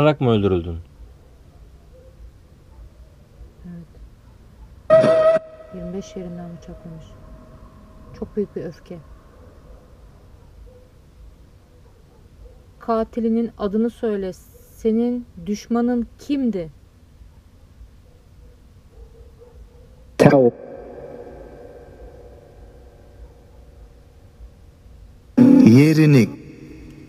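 A man speaks quietly and close by, in short phrases.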